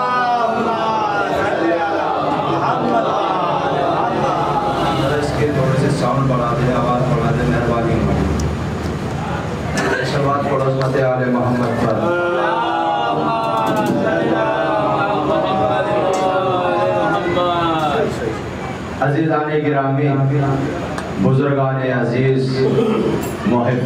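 A young man chants loudly into a microphone, heard through a loudspeaker in an echoing room.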